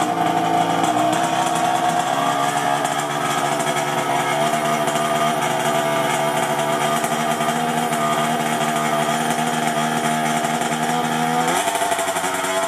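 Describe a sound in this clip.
A small engine's idle shifts pitch slightly as it is adjusted.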